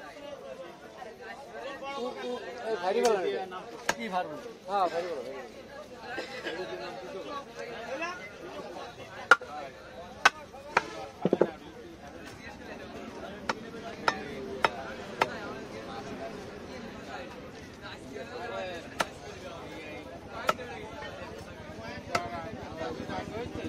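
A large knife chops through fish into a wooden chopping block.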